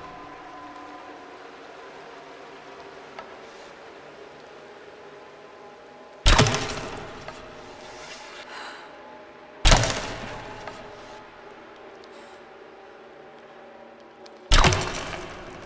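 A bowstring snaps as arrows are shot.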